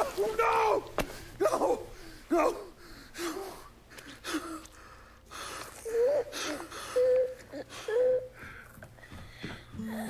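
A man sobs and moans.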